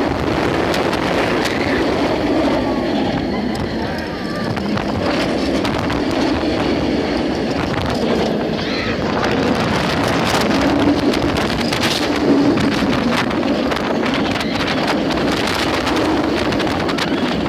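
Strong wind buffets the microphone.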